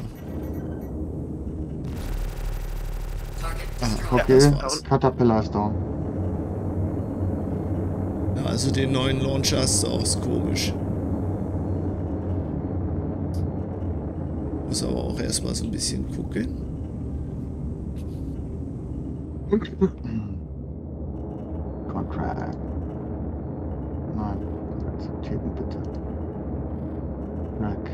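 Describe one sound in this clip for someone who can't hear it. A young man talks casually through a microphone.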